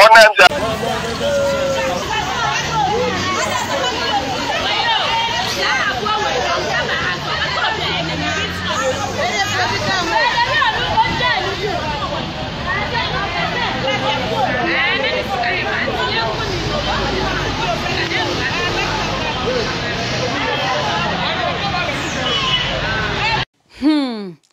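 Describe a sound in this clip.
A crowd of people talk and exclaim excitedly outdoors.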